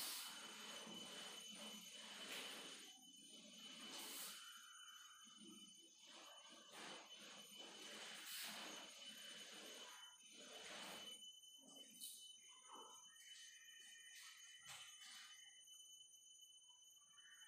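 A marker squeaks and scratches on a whiteboard.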